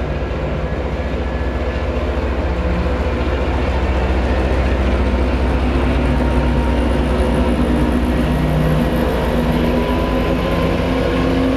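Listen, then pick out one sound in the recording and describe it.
A diesel locomotive engine rumbles loudly and steadily, growing louder as it draws near.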